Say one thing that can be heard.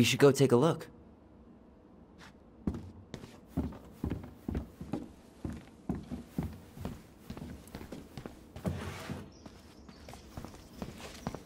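Footsteps tread on a wooden floor.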